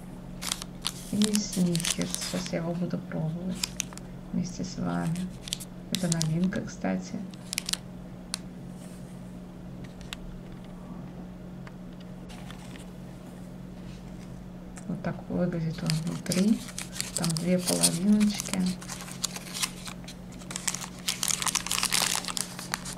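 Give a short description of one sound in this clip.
A plastic wrapper crinkles in someone's hands.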